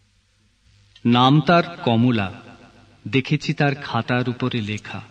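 A man recites poetry slowly and expressively, close to a microphone.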